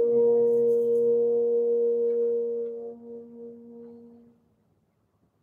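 A brass instrument holds a long final note in a large hall, then the note rings away.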